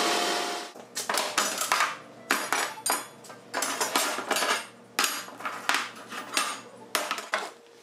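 Metal pieces clank against a table.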